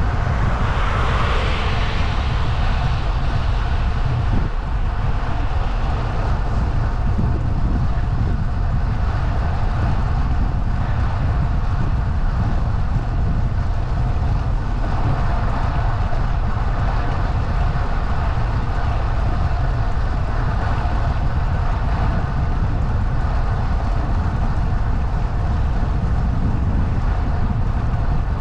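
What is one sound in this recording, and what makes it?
Wind rumbles steadily against the microphone outdoors.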